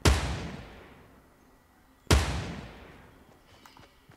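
A sniper rifle fires a loud shot that echoes away.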